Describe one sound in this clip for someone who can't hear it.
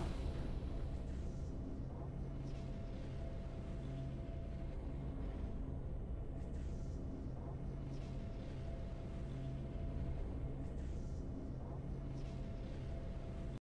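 Low, slow game music plays steadily in a repeating loop.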